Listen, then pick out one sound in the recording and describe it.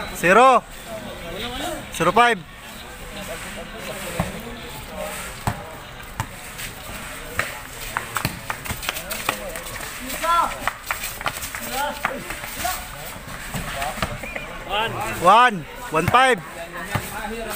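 Young men shout and cheer outdoors.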